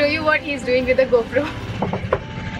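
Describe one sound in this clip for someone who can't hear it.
A young woman speaks with animation close to the microphone.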